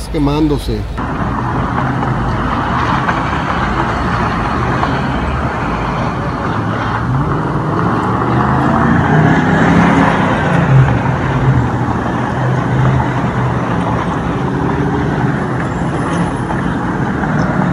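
Cars drive past on a street nearby.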